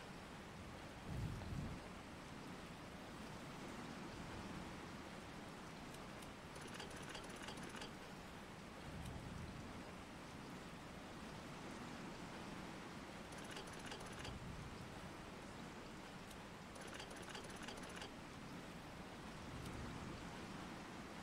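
A heavy stone dial turns with a low grinding rumble.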